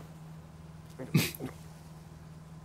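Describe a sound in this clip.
A man chuckles softly close to a microphone.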